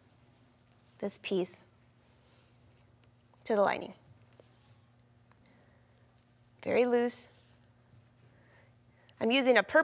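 A woman speaks calmly and clearly, close to a microphone, in short phrases.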